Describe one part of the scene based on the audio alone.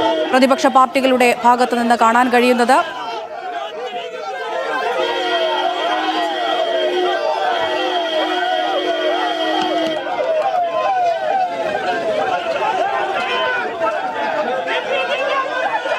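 A crowd of men shouts slogans loudly and rhythmically, close by.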